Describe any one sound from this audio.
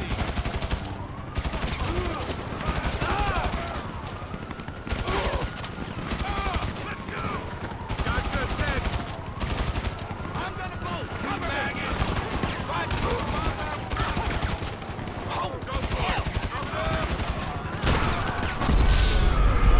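Police sirens wail and rise and fall in the distance.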